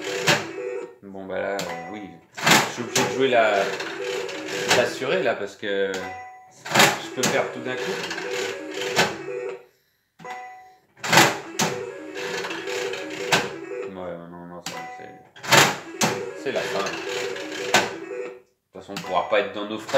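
A slot machine plays a short electronic jingle.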